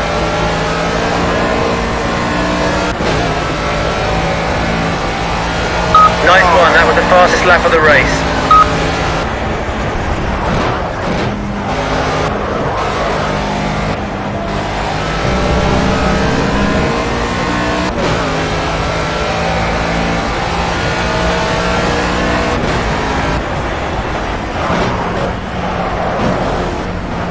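A race car engine roars, revving up and down through the gears.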